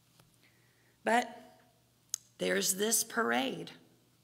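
A woman speaks calmly into a microphone in a large echoing room.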